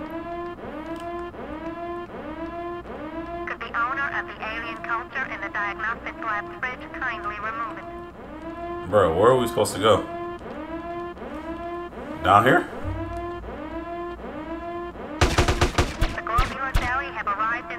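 A man talks into a headset microphone.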